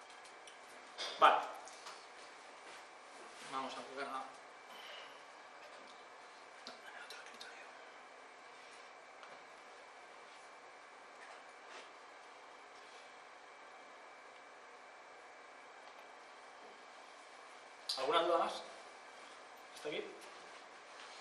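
A young man speaks briefly in a room, with long pauses between phrases.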